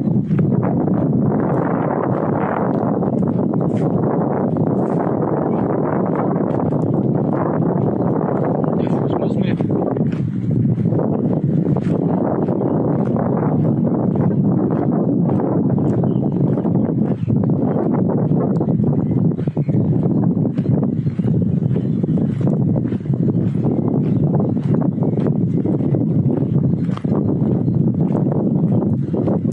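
Wind buffets and rumbles steadily outdoors in the open.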